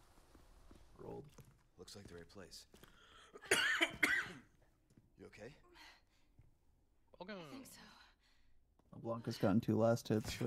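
A young man talks into a microphone in a casual voice.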